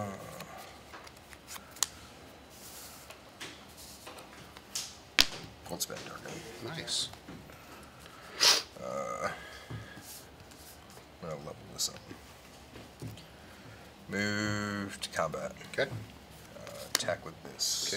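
Playing cards tap and slide on a soft mat.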